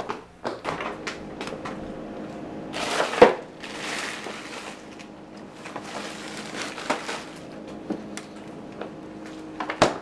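A refrigerator door opens and closes.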